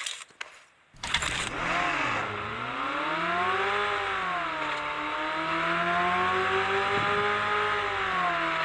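A car engine starts and revs, rising and falling in pitch as it drives off.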